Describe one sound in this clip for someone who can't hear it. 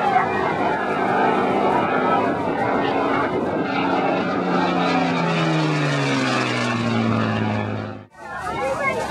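A propeller plane's engine drones loudly overhead, its pitch slowly dropping as it passes.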